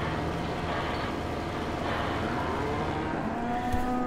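Cows moo nearby.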